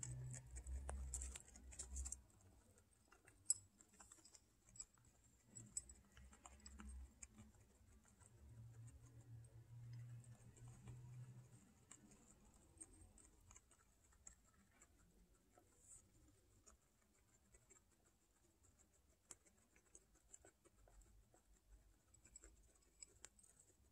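A guinea pig crunches dry food pellets close by.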